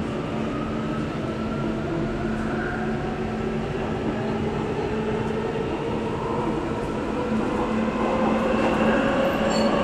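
A subway train rumbles and hums steadily as it rides along the track.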